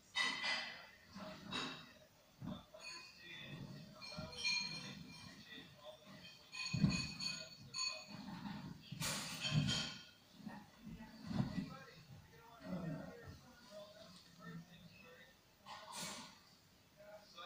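A man talks on a television nearby.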